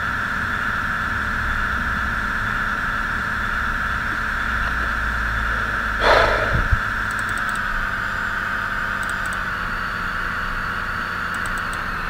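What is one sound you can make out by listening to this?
A train engine hums steadily as the train rolls along the rails.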